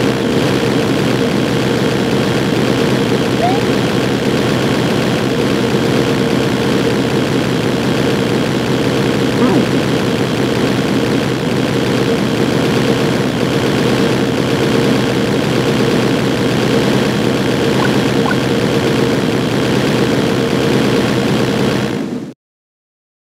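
Upbeat retro video game music plays loudly.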